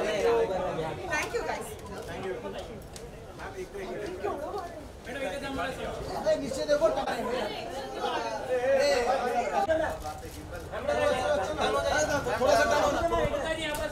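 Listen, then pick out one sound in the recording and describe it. Several men talk and call out over one another nearby.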